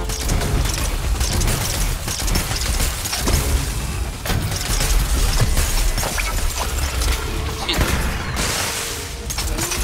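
Magic blasts crackle and burst in quick succession.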